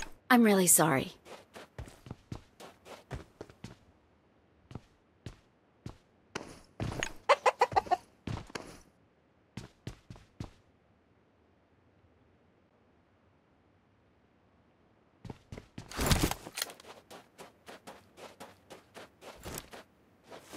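Footsteps thump quickly on a hard floor.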